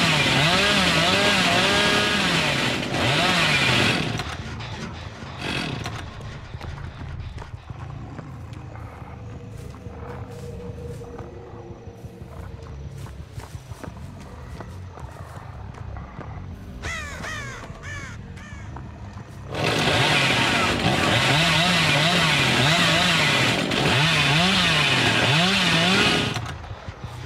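A chainsaw engine idles loudly with a wavering, sputtering drone.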